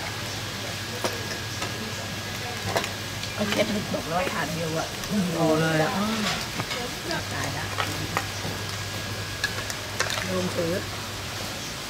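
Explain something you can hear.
Plates and cutlery clink.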